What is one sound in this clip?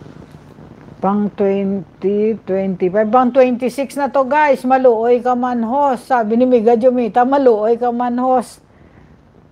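A middle-aged woman sings close to a microphone.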